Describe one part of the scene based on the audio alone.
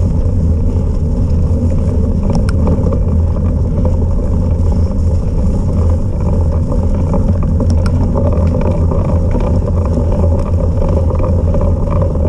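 Tyres roll and crunch over snowy, muddy ground.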